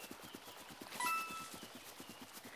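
A coin chimes as it is collected.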